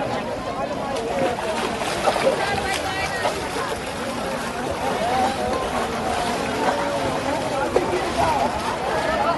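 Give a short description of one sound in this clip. A crowd of people talk and call out nearby outdoors.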